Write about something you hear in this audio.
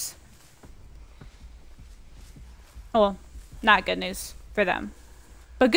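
Footsteps tread through undergrowth.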